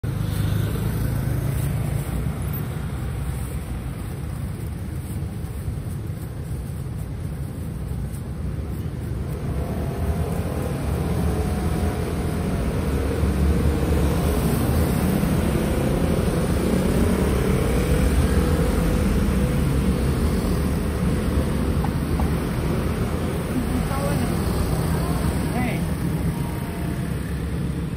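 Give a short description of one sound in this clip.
Street traffic rumbles in the background.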